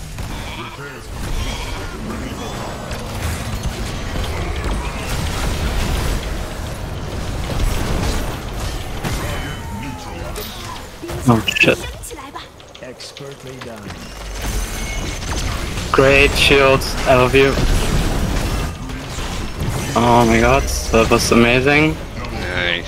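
Spell blasts and impacts from a video game battle crackle and boom.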